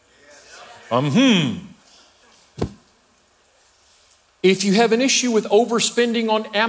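A middle-aged man speaks with animation into a microphone, heard through loudspeakers in a large room.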